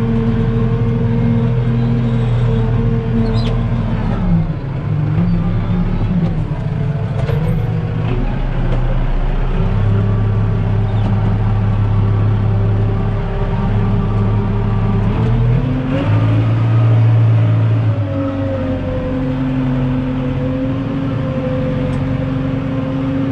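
A tractor engine drones loudly and steadily, its pitch rising and falling as it changes speed.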